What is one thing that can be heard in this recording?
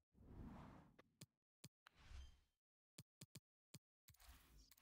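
Short menu clicks sound in quick succession.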